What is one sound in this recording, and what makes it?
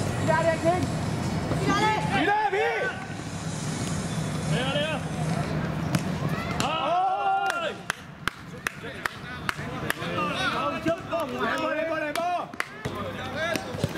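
Young men shout and call out to each other across an open outdoor court.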